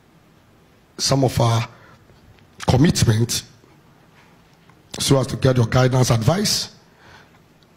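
A man speaks into a microphone in short, measured phrases with pauses.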